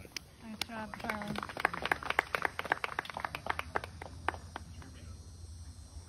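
Hands clap in applause.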